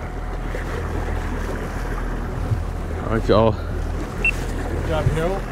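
Waves slosh against a boat's hull.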